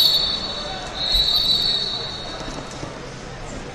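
A referee's whistle blows sharply.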